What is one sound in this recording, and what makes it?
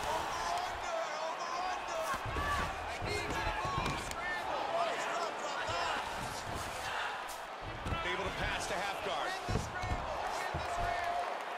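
Bodies thud and scuffle as two fighters grapple on a mat.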